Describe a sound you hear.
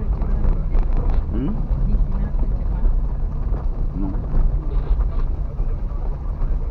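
Gravel crunches under tyres.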